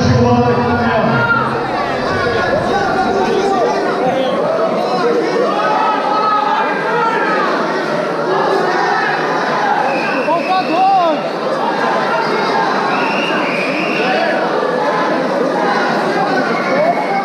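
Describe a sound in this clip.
A crowd of spectators shouts and calls out in a large echoing hall.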